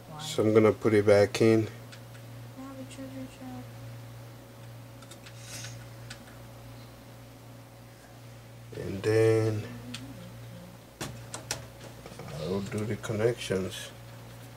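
A circuit board clicks and knocks faintly as a hand turns it over.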